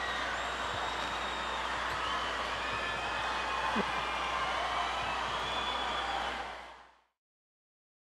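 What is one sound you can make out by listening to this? A large crowd cheers and screams in a huge open-air arena, then fades out.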